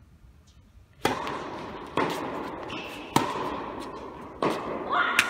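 A racket strikes a tennis ball with sharp pops that echo through a large hall.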